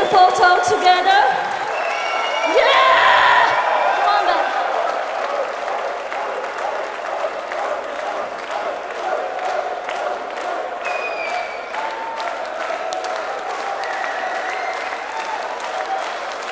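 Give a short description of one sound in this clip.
A crowd cheers and shouts in a large open space.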